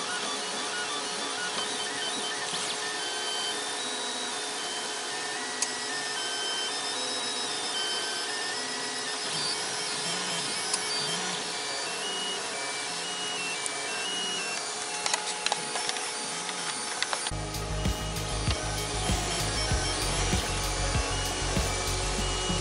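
A printer's motors whine and buzz in quickly changing tones.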